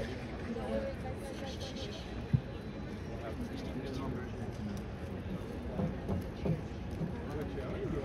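A man speaks calmly into a microphone, faint and distant.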